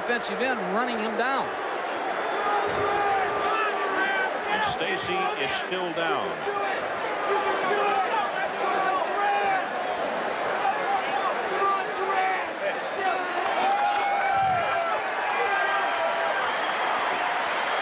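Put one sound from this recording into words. A large stadium crowd roars steadily in the background.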